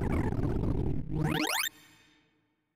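A quick series of electronic tones sweeps upward in pitch.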